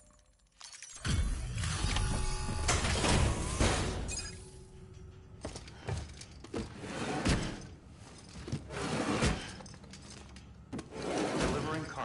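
Heavy cargo rattles and thuds as it is lifted.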